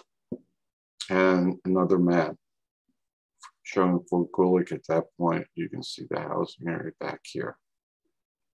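A man speaks calmly into a microphone, close by.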